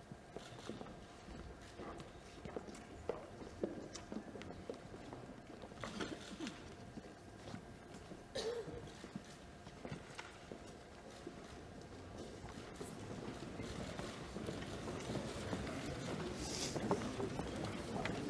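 A large crowd murmurs and shuffles in a big echoing hall.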